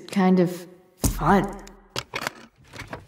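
A heavy trunk lid thuds open.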